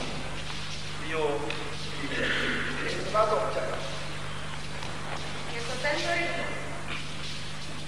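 A man speaks loudly in an echoing hall.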